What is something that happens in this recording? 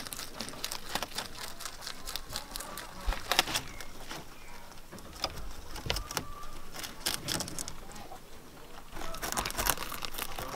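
Rabbits munch on leaves with soft crunching bites.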